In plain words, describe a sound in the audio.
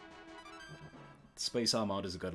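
Electronic game tones chime briefly.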